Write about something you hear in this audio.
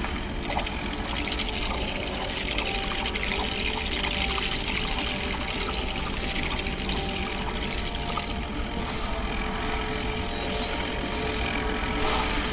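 Bright tinkling chimes ring rapidly.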